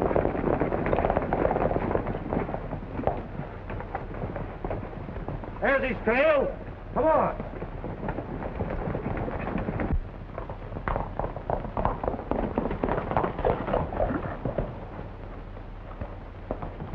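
Horses' hooves pound and clatter on dirt at a gallop.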